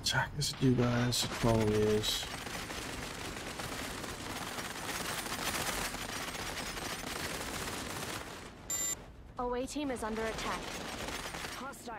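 Muffled explosions rumble and crackle.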